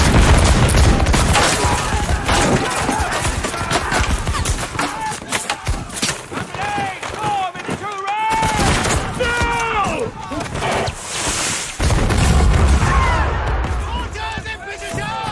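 A volley of muskets fires with loud, rapid cracks and rumbling booms.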